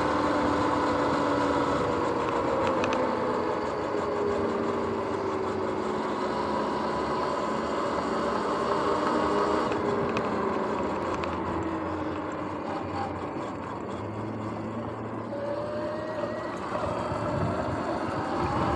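Tyres hum on smooth pavement.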